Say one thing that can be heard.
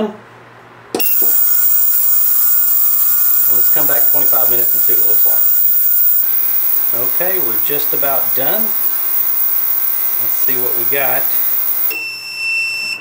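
An ultrasonic cleaner hums with a steady high whine.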